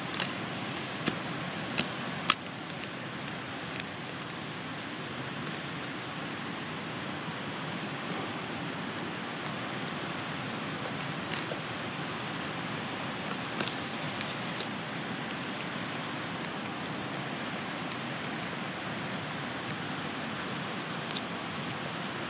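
A knife taps and knocks against wood.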